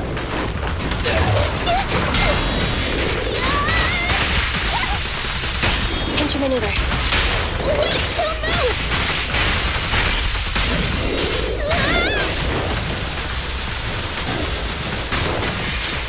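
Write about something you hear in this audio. Energy blasts zap and crackle loudly.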